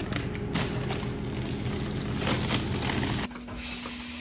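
Powder pours from a sack into a metal bucket with a soft hiss.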